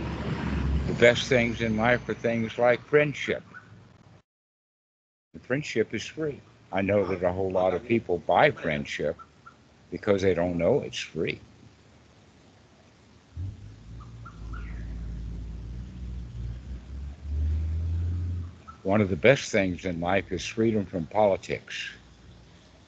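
An elderly man talks with animation over an online call.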